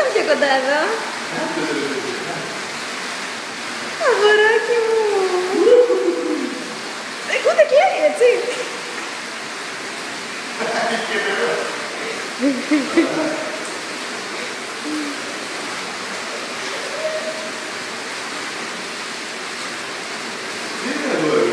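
A man talks softly and playfully nearby, in an echoing room.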